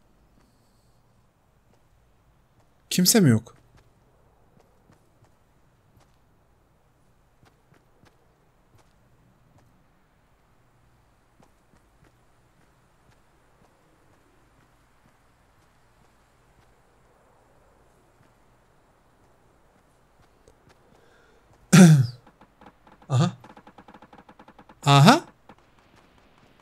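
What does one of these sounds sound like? A man talks quietly into a microphone.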